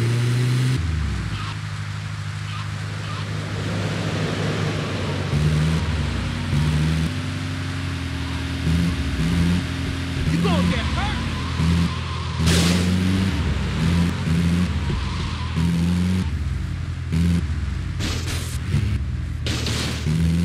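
A van engine hums steadily while driving.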